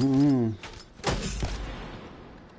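A gun fires a loud shot in a video game.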